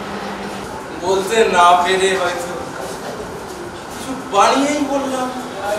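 A young man speaks dramatically in a loud, echoing voice.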